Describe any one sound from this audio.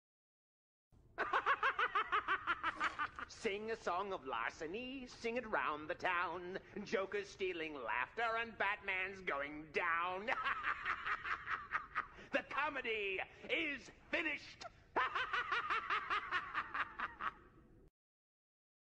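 A man laughs wildly and cackles in a theatrical voice.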